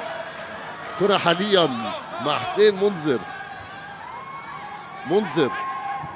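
Men shout to each other across an open football pitch.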